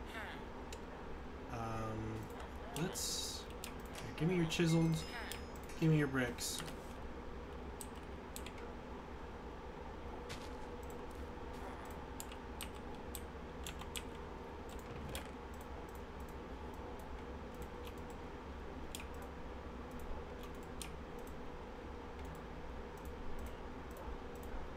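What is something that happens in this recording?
Game menu items click softly as they are moved.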